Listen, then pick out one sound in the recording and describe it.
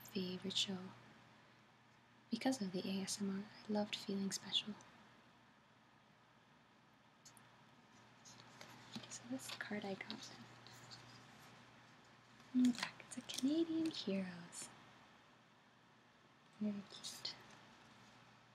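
A woman speaks calmly close to the microphone.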